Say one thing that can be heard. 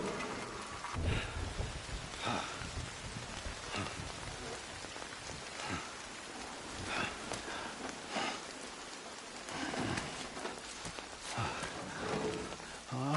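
Gear rattles and scrapes on rocks as someone crawls.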